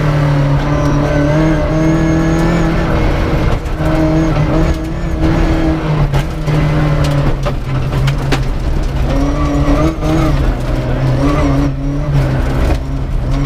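Gravel and stones rattle against the underside of the car.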